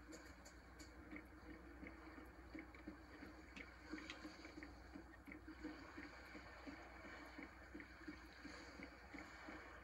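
Footsteps thud steadily on hollow wooden boards.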